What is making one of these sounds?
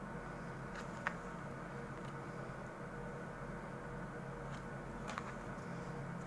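A needle clicks lightly against a plastic board.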